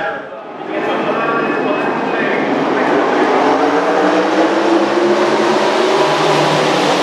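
Race car engines roar past loudly.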